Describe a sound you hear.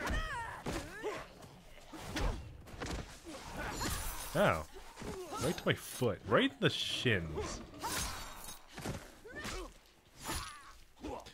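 Punches and kicks land with sharp thuds.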